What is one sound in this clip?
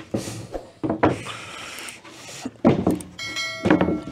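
A wooden cabinet knocks and thuds as a man lifts it.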